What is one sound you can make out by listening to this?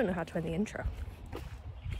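A young woman speaks close up, with animation.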